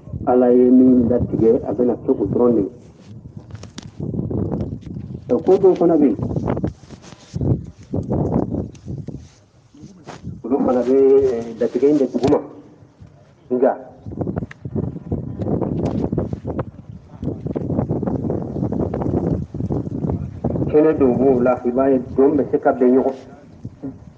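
A man speaks with animation close to the microphone.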